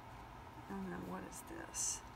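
Paper rustles and crinkles between hands.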